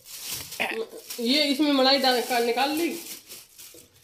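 A plastic bag rustles as it is handled.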